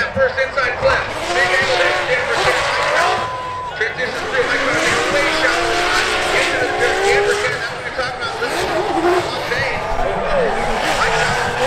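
Tyres screech as a car slides around the track.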